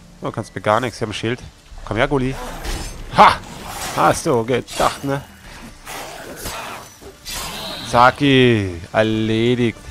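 A sword slashes and strikes a beast.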